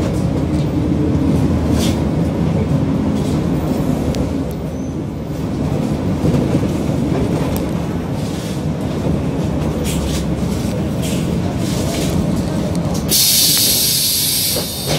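Vehicles drive past close by on a street.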